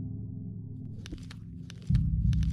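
Soft keyboard clicks tap out in quick bursts.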